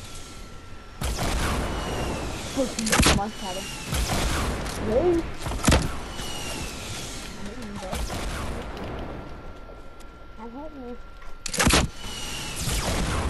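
Rockets explode nearby with loud booms.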